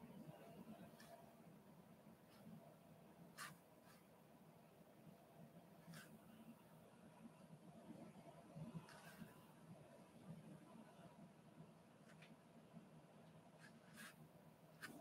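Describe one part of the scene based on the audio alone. A small paintbrush softly taps and strokes a painted surface.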